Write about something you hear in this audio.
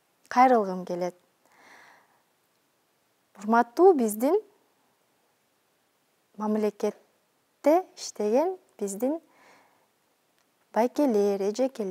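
A young woman speaks slowly and expressively through a microphone, with pauses between phrases.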